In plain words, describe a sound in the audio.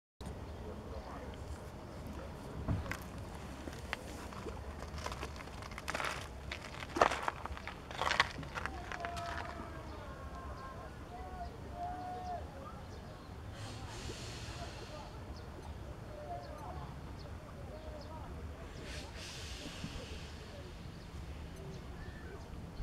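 Small ripples of water lap gently nearby.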